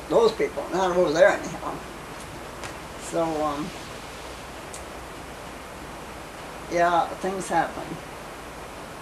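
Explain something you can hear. An elderly woman speaks calmly and cheerfully close by, with pauses.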